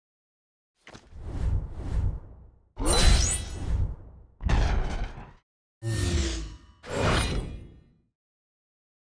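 Game sound effects whoosh and chime in short bursts.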